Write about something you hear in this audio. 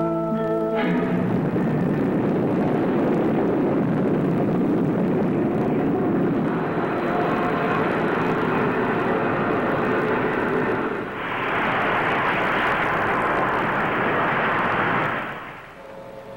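A rocket roars as it launches and climbs.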